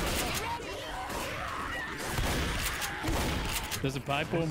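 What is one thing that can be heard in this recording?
Shotgun blasts boom in quick bursts.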